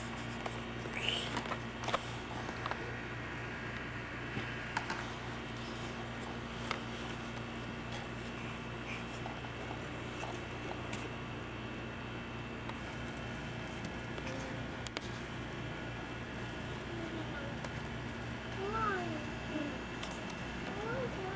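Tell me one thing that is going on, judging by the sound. A baby babbles softly nearby.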